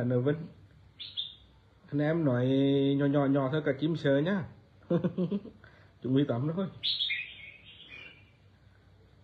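A caged bird chirps and whistles.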